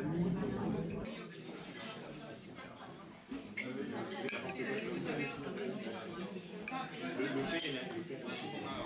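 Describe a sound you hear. Metal cutlery clinks lightly against a glass plate.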